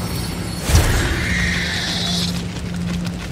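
A short cartoon whoosh sounds as a small creature is flung into the air.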